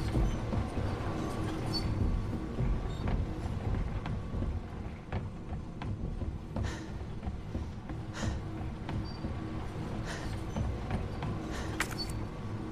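Footsteps thud on metal stairs and floors.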